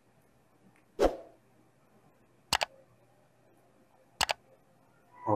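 Mouse clicks sound sharply a few times.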